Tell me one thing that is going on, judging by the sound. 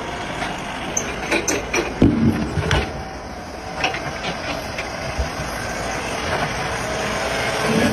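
Heavy tyres thump against each other as they tip over.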